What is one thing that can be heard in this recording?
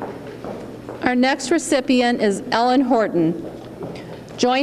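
A woman speaks calmly into a microphone over loudspeakers.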